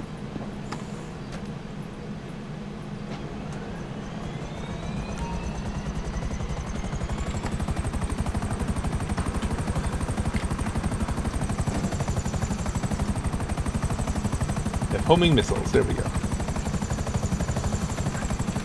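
Helicopter rotor blades whir up and beat rapidly, growing louder as the helicopter lifts off.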